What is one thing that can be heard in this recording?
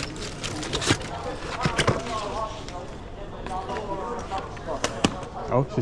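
Suitcase wheels roll and rattle over a hard floor.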